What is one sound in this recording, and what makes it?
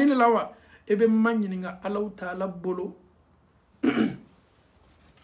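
A man speaks close up with animation.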